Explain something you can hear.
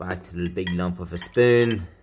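A metal spoon clinks against a glass jar.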